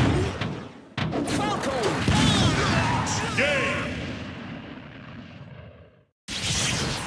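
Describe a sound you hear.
A loud video game blast booms as a fighter is knocked away.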